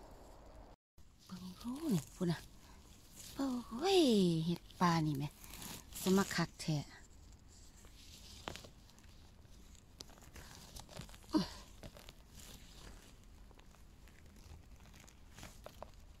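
A gloved hand brushes and rustles through dry moss and twigs.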